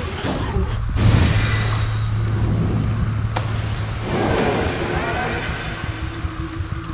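A magical blast bursts with a crackling whoosh.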